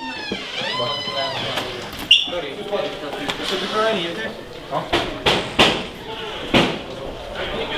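Young men talk and shout nearby in an echoing corridor.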